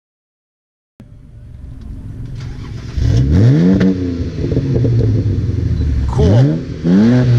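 A second car engine revs loudly in quick bursts.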